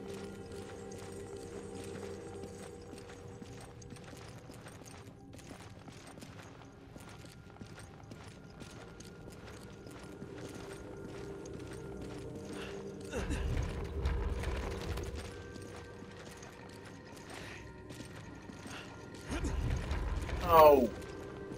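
Footsteps tread on a hard stone floor.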